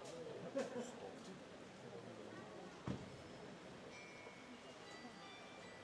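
Carillon bells ring out a melody.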